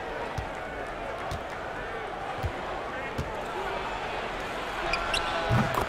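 A basketball bounces on a hardwood floor in steady dribbles.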